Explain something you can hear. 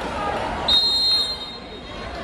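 A referee's whistle blows briefly.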